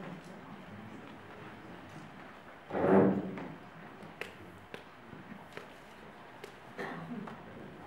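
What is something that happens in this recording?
Footsteps thud across a wooden stage.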